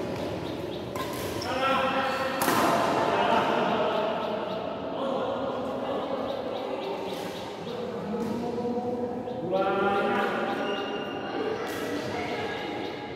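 Men talk and call out loudly in a large echoing hall.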